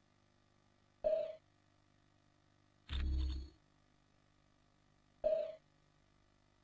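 Short game menu sounds chime as options are picked.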